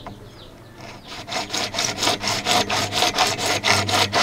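A hacksaw cuts through a plastic pipe in quick back-and-forth strokes.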